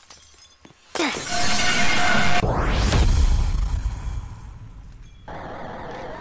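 A loud, harsh shriek blares suddenly and then fades.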